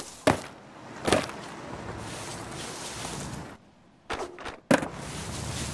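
A skateboard clacks sharply as it lands.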